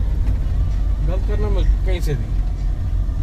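A man talks inside a moving car.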